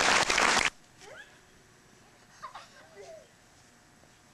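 A young girl calls out playfully outdoors.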